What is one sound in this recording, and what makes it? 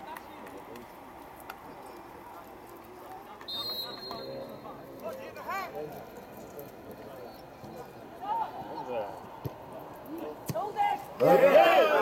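Players call out to each other across an open field.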